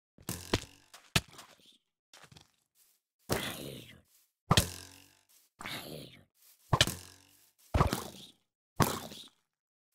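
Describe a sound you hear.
Arrows thud into targets.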